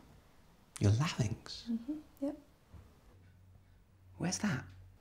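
A young man speaks nearby in a troubled, hesitant voice.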